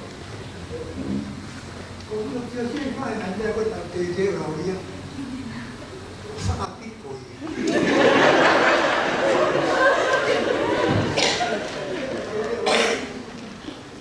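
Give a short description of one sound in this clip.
An elderly man reads aloud calmly through a microphone in a room with slight echo.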